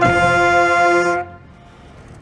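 A brass horn plays a loud sustained note close by, then stops.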